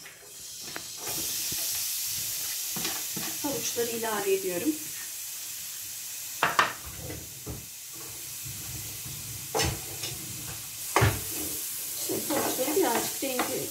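Grated carrots sizzle as they fry in a hot pan.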